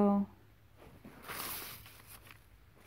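A paper receipt rustles and crinkles in a hand.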